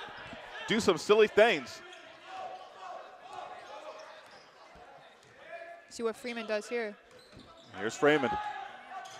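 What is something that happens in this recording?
Sneakers squeak sharply on a gym floor in short bursts.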